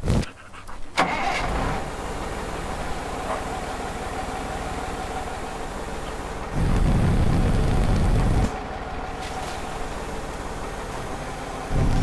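A mobile crane truck's diesel engine rumbles under load.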